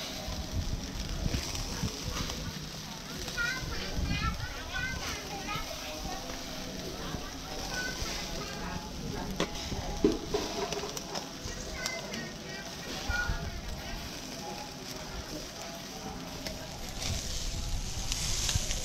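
Skewered chicken sizzles over charcoal.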